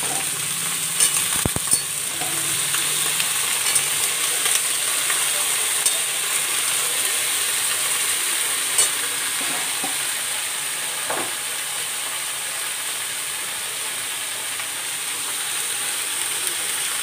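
A metal spatula scrapes and clatters against a pan while stirring.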